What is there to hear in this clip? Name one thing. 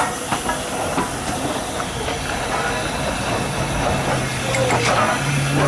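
A steam locomotive hisses loudly close by as it lets off steam.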